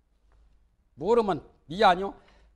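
A middle-aged man speaks calmly into a microphone.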